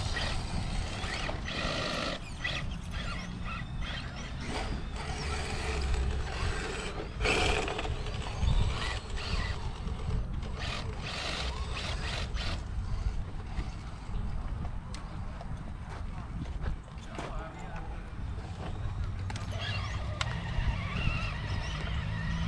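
Plastic tyres scrape and crunch over rocks and dirt.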